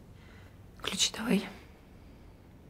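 A second young woman speaks calmly, close by.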